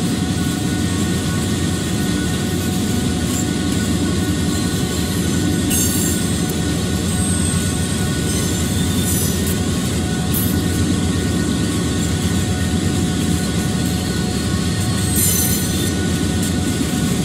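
Train wheels clatter and roll along the rails.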